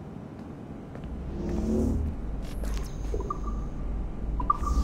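Heavy sliding doors rumble shut.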